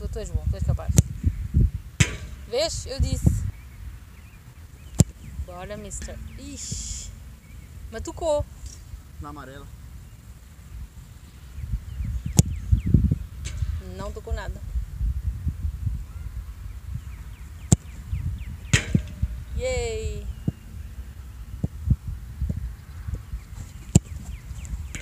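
A foot kicks a ball with a sharp thump, again and again.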